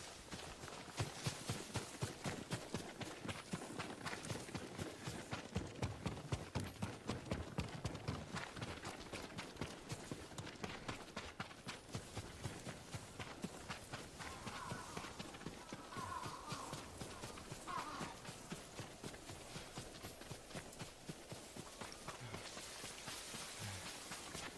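Tall grass rustles and swishes as someone runs through it.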